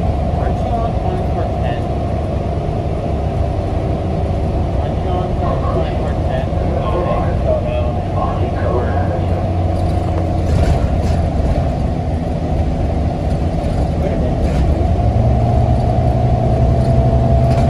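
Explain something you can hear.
A bus engine hums and drones steadily.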